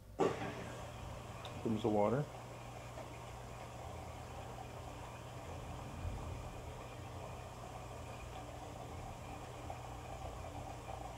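Laundry tumbles softly inside a washing machine drum.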